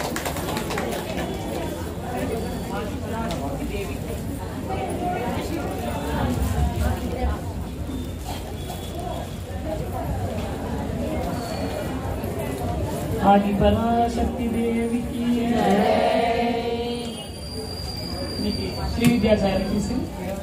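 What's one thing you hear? A woman sings into a microphone, heard through a loudspeaker.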